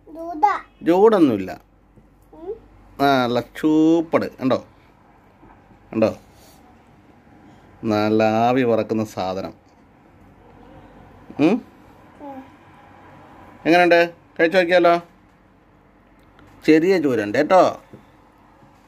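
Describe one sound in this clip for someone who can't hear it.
A young child talks in short bursts close by.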